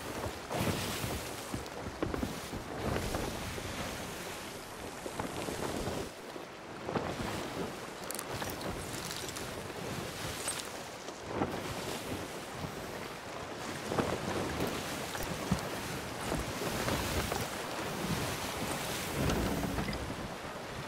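Ocean waves wash and surge steadily nearby.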